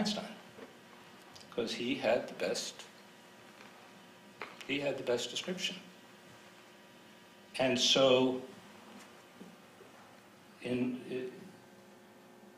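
An elderly man speaks calmly into a microphone, pausing between phrases.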